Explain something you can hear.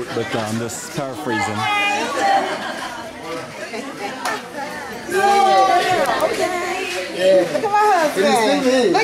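A group of adults sing and call out with animation close by.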